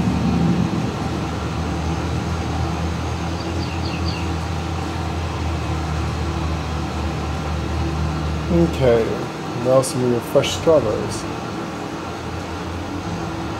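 A tractor engine hums steadily.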